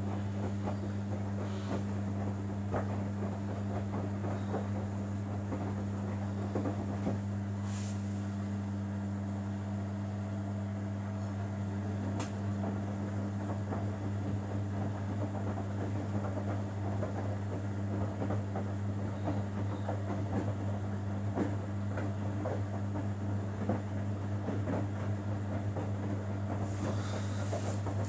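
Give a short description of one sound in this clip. A front-loading washing machine's motor hums as the drum turns during a wash cycle.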